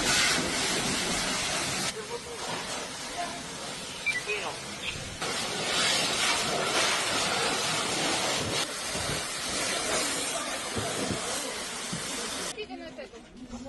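Water hisses loudly from a fire hose.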